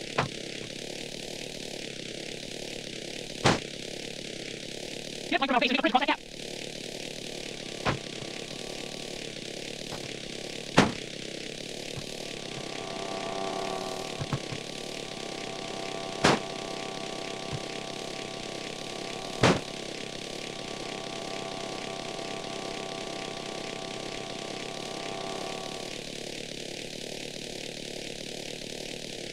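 A helicopter's engine and rotor drone steadily.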